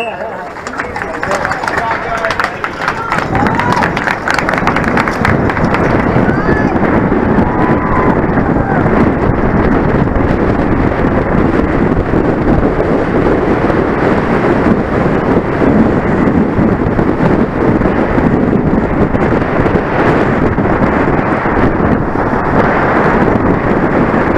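Wind rushes loudly past a bicycle rider.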